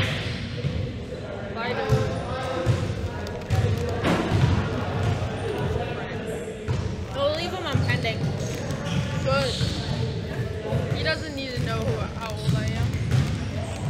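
A snack bag crinkles.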